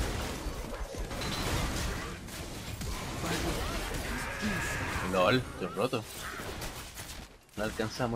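Magic blasts and weapon hits crackle and thud in a fight.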